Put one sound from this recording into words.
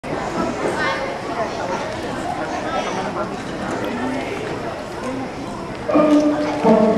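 An audience murmurs and chatters in a large hall.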